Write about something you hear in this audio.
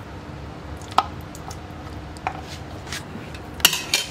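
A metal spoon scrapes and taps against a pot.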